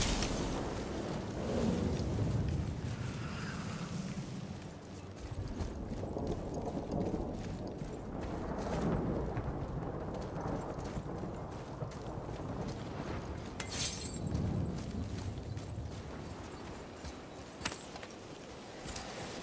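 Heavy footsteps crunch over dirt and grass.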